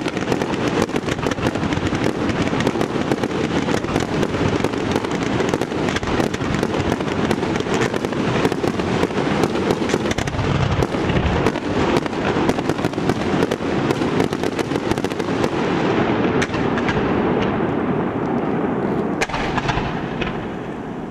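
Firework fountains crackle and fizz in dense, rapid pops.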